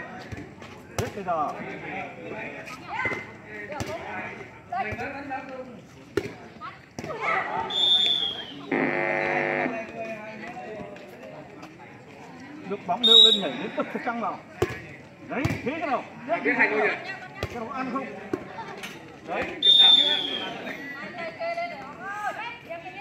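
A volleyball is struck with sharp slaps by hands.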